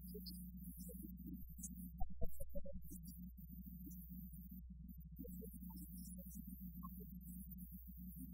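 A young woman speaks calmly through a microphone in a large echoing hall.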